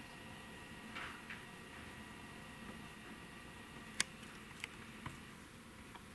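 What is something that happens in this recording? Small metal parts click softly.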